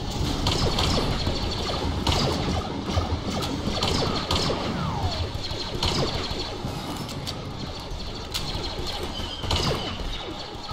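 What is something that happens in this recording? Sniper rifle shots crack out again and again, with a sharp echo after each.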